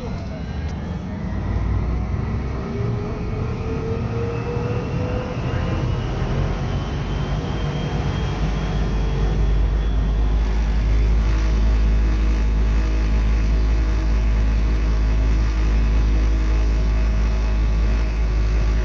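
A tram hums and rumbles steadily as it rides along.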